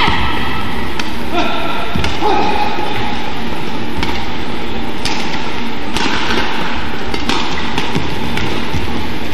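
A badminton racket smacks a shuttlecock back and forth.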